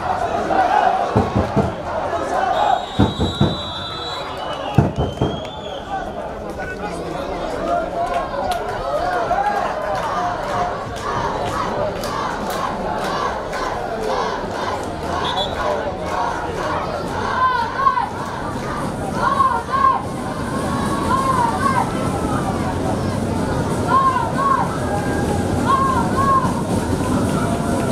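Young men shout to each other across an open field.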